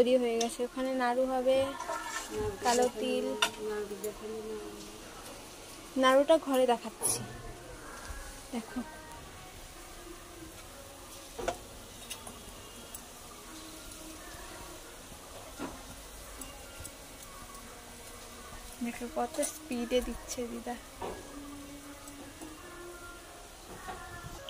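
Oil sizzles and bubbles steadily in a frying pan.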